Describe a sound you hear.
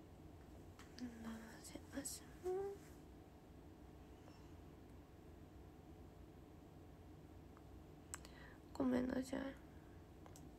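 A young woman speaks briefly and softly close to a microphone.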